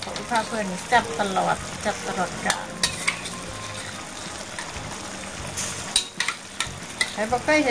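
A metal spatula clinks and scrapes against a dish.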